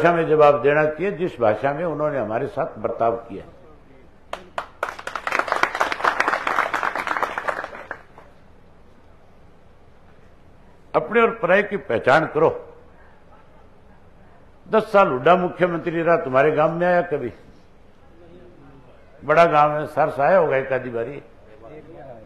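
A man speaks loudly and with animation through a microphone and loudspeaker.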